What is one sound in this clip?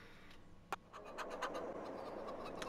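Chickens cluck and scratch nearby.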